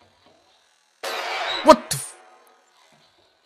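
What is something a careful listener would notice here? A head is slammed hard onto a wooden table with a heavy thud.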